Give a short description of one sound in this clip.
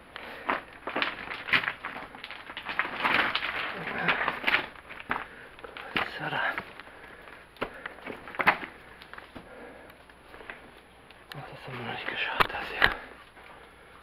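Footsteps crunch and scrape on loose rocks.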